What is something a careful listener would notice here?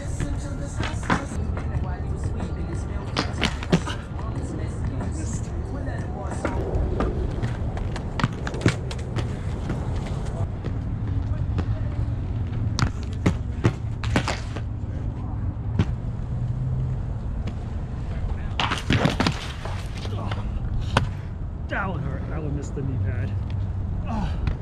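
Skates knock and clatter against the ground.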